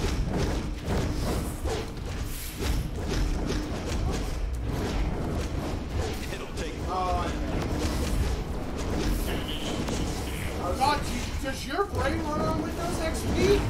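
Men talk with animation close to a microphone.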